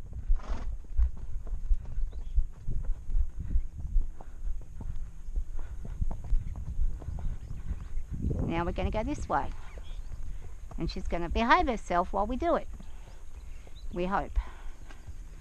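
A horse's hooves thud softly on dirt at a steady walk.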